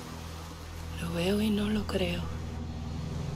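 A young woman speaks quietly, close by.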